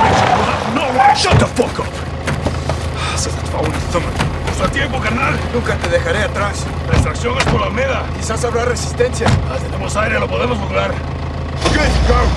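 Another man answers defiantly.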